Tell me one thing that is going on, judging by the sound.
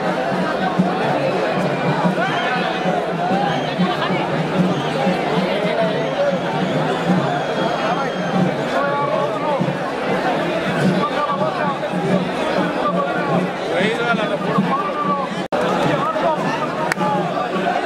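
Many men talk loudly at once nearby.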